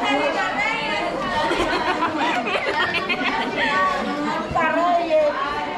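Young girls giggle close by.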